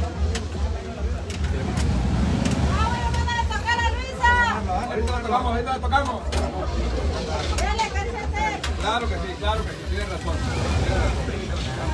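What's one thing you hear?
A crowd murmurs around.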